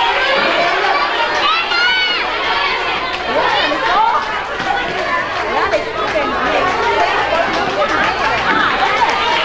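A large crowd of children and adults chatters and cheers in a big echoing hall.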